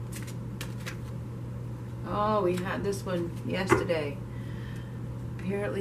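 Playing cards are shuffled and laid down onto a table.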